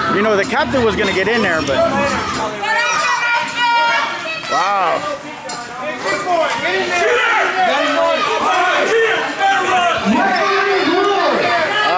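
Several men shout and talk loudly nearby in a large echoing hall.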